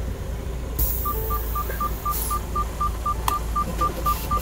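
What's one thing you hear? A vehicle's warning chime beeps quickly and steadily.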